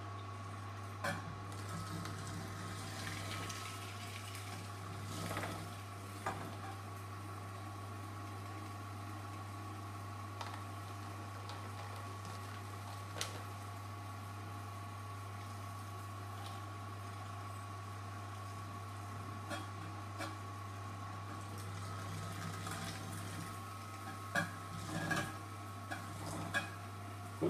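A wooden plunger knocks and squeaks against a juicer's metal chute.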